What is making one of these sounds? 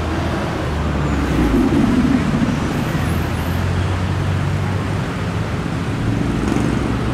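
A bus engine roars as the bus pulls past close by.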